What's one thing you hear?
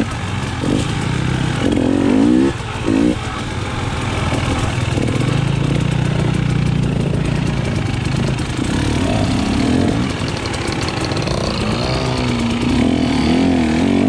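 A dirt bike engine revs and drones up close, rising and falling in pitch.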